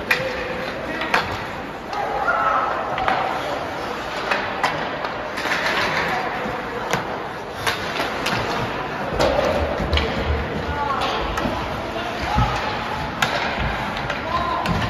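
Voices of a small crowd echo in a large rink.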